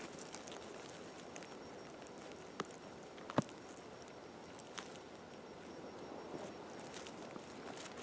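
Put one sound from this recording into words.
Forest floor litter rustles as a hand pulls a mushroom from the ground.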